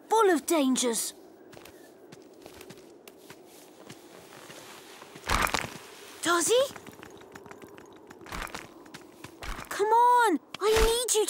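A young boy speaks with animation, close by.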